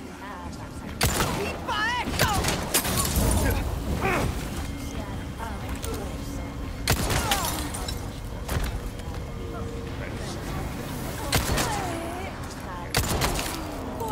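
Gunshots ring out, sharp and loud.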